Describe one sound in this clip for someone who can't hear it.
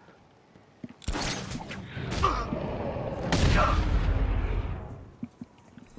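Heavy blows land with loud, booming thuds.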